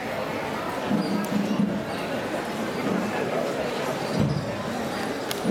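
A crowd murmurs and chatters nearby outdoors.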